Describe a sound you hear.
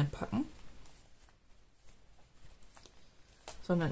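Paper rustles softly as hands handle it.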